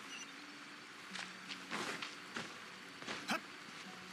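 Footsteps patter quickly on a path.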